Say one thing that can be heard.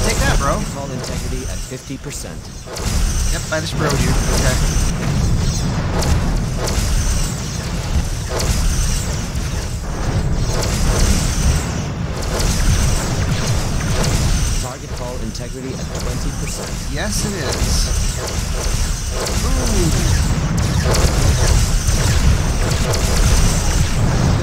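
Explosions burst against a ship.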